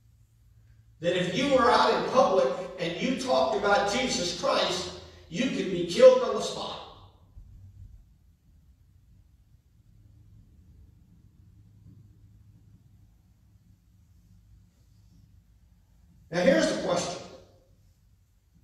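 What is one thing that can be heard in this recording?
A middle-aged man speaks calmly through a microphone in a large echoing hall.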